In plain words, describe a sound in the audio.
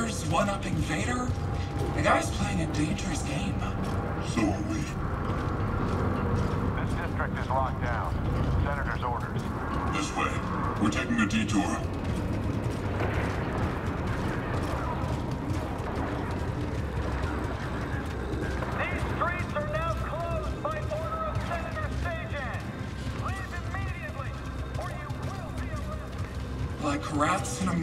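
Heavy boots clank on metal stairs.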